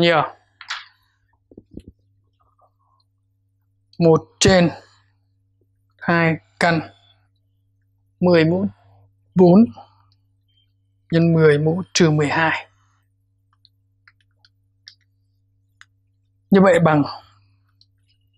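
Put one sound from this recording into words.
A man speaks in short bursts, explaining calmly.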